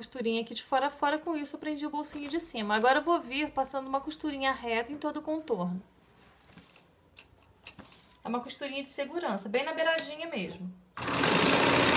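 A woman speaks calmly close by, explaining.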